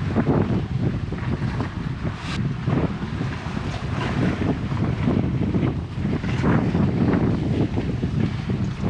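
Hands scrape and grip on rough rock.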